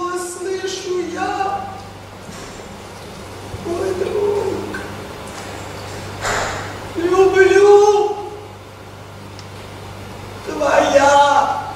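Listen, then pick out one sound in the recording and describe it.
A woman sings in long, held phrases close by.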